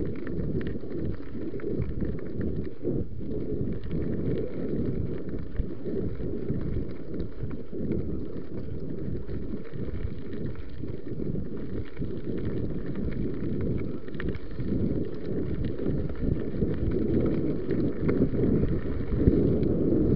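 Bicycle tyres roll and crunch over a gravel track.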